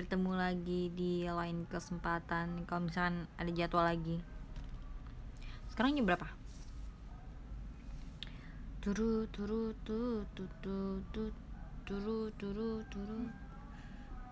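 A young woman speaks close to a phone microphone.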